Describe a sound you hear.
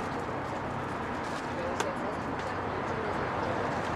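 A gloved hand rustles softly while folding a crepe.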